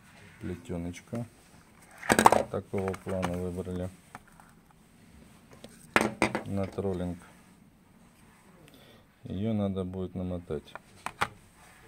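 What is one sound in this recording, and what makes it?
A plastic spool package crackles as a hand handles it.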